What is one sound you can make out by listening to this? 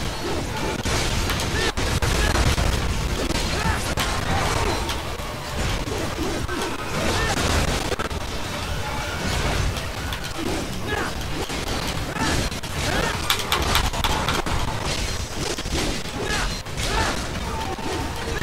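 Swords clash and slash with sharp metallic strikes.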